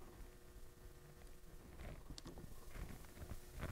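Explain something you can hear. Scissors snip a thread.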